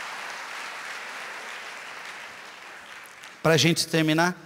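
A large crowd applauds, then quiets down.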